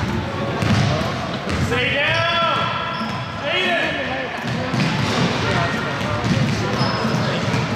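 Sneakers squeak sharply on the floor.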